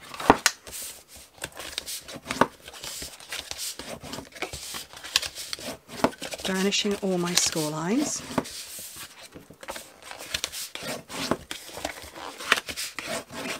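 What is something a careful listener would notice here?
A bone folder scrapes firmly along a paper fold.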